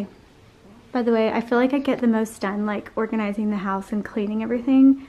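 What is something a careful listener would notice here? A young woman talks brightly close by.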